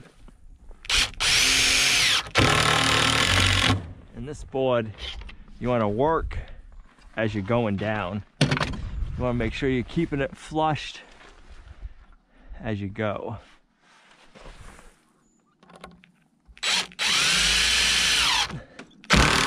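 A cordless drill whirs, driving screws into wood in short bursts.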